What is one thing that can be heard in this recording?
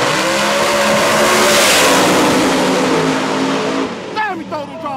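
Race car engines roar loudly as the cars speed past close by.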